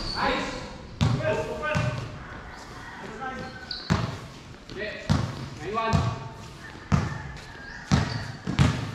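A basketball bounces on a hard court with regular thuds.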